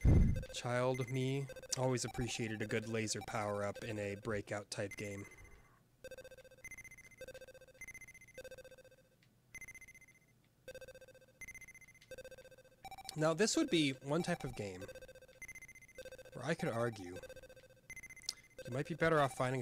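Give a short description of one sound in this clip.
Short electronic beeps repeat at a steady pace as a ball bounces in a video game.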